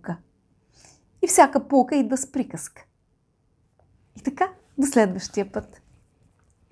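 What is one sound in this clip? A woman speaks warmly and calmly, close to a microphone.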